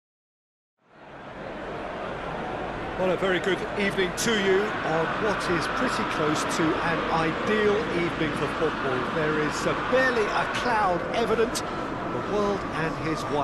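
A large stadium crowd cheers and chants loudly.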